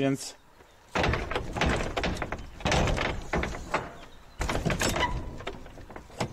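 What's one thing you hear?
A stick scrapes and taps against a wooden gate.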